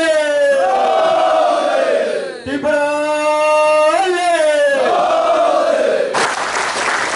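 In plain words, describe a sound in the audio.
A group of men shout slogans together in a large echoing hall.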